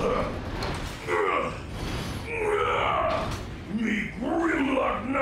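A deep-voiced man speaks gruffly and forcefully.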